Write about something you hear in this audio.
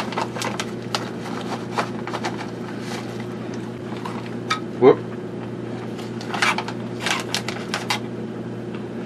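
A plastic package rustles and crinkles in a man's hands.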